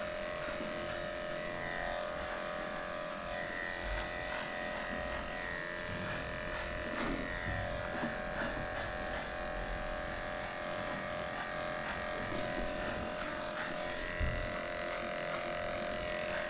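Electric hair clippers buzz steadily close by.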